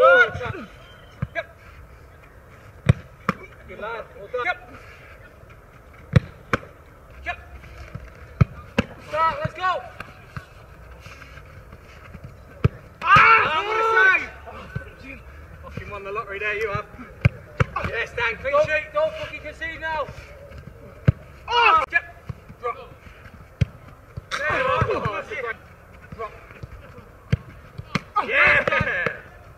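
A football is kicked with sharp thuds.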